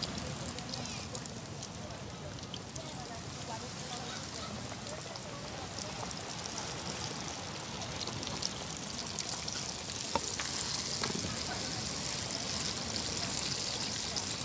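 A wood fire crackles.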